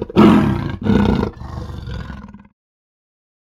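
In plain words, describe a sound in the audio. A lion roars loudly twice, then growls and fades.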